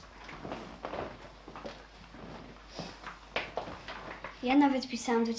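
Feet shuffle and step on a wooden floor.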